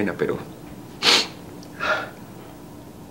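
A man sniffs and sobs.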